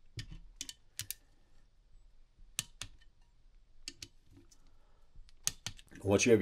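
A ratchet wrench clicks in short bursts against metal.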